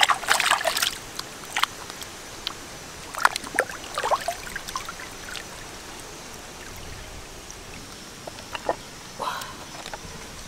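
Wet fish flesh squelches as hands handle it.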